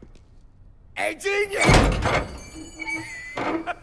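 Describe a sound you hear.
A young man shouts loudly and with animation.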